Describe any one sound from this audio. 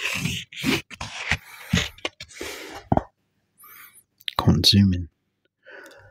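A man speaks softly and close into a microphone.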